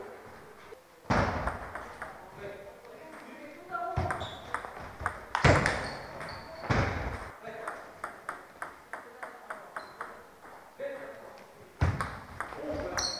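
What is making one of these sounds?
Table tennis balls click quickly back and forth off paddles and tables.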